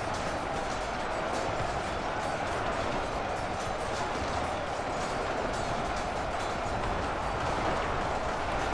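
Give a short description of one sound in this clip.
A vast battle rages with a steady, dense roar of clashing and clatter.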